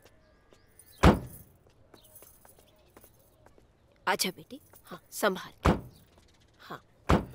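A van door clunks open and shut.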